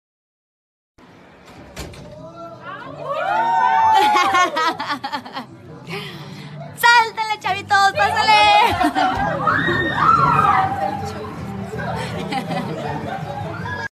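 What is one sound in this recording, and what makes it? A crowd of people chatters and shouts loudly.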